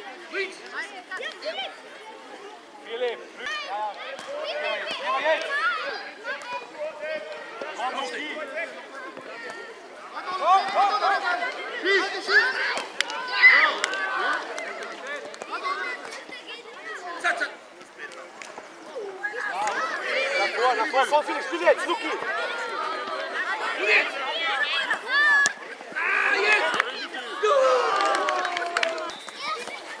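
Young children shout and call out across an outdoor pitch.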